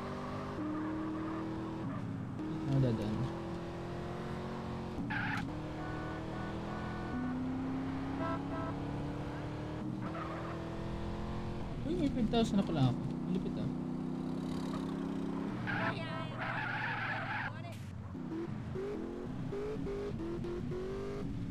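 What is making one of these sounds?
A car engine roars steadily and shifts pitch through gear changes.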